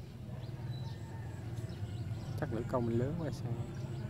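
A small drop lightly plops into still water.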